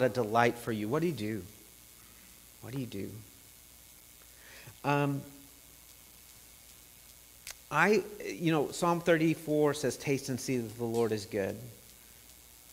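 A middle-aged man speaks calmly with pauses, heard through a microphone.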